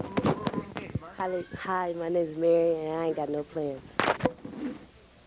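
A young woman speaks cheerfully into a microphone.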